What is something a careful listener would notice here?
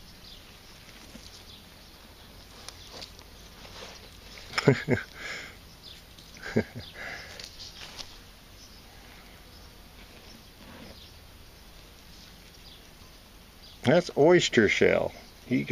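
Dry grass rustles and crackles as a hand brushes through it.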